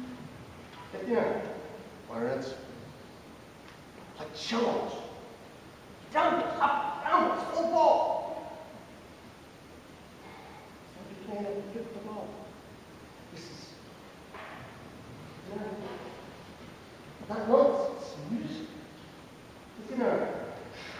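A man's voice gives instructions in a large hall, with pauses between phrases.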